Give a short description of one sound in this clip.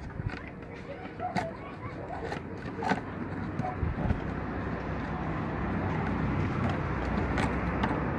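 A knife scrapes and cuts into plastic pipe.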